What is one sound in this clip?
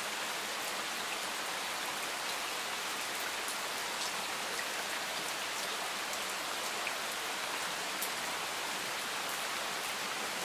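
Steady rain falls and patters on leaves and gravel outdoors.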